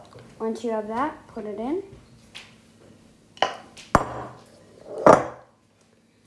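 Flour pours and patters into a glass bowl.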